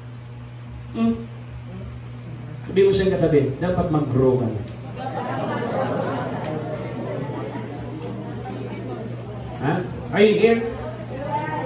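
A man speaks to a gathering, with long pauses between phrases.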